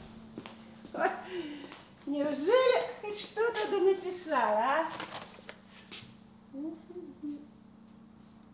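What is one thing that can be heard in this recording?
An elderly woman talks with animation close by.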